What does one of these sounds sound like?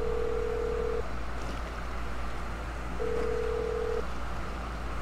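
A phone call rings with a steady ringing tone.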